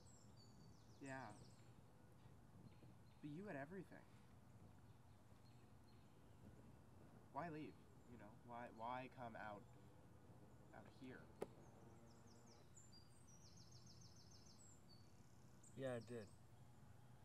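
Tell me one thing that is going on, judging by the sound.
A young man speaks calmly nearby in short bursts.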